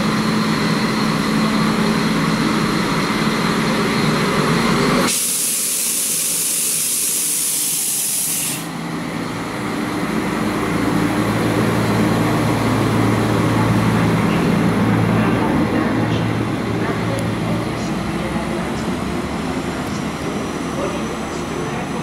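Train wheels clatter over the rails.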